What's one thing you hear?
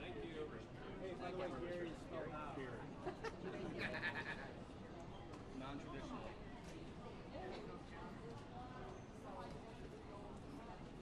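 Many people talk in a large echoing hall.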